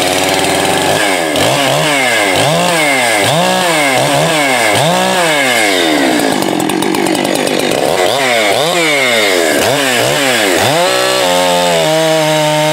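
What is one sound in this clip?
A chainsaw engine revs up and down again and again, loud and close.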